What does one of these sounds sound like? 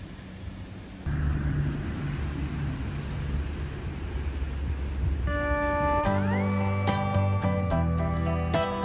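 Small waves wash onto a sandy beach in the distance.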